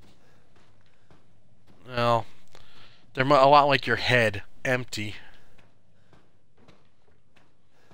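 Footsteps creak down wooden stairs.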